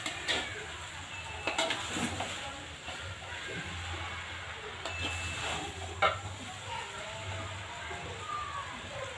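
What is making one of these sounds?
Utensils scrape and clink against a metal pan.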